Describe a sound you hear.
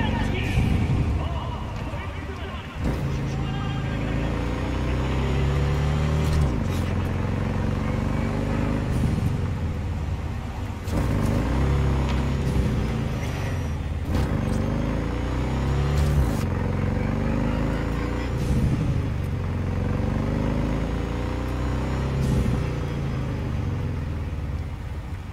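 A motorcycle engine roars and revs up through the gears at speed.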